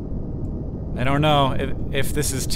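A young man speaks briefly into a microphone.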